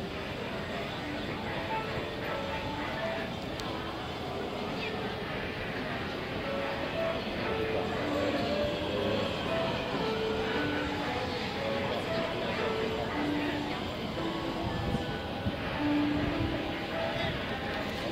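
Footsteps shuffle across a hard floor.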